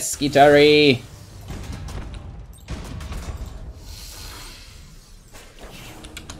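Laser weapons fire in bursts in a video game.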